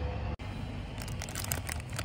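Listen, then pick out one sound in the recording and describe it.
A man bites and chews food.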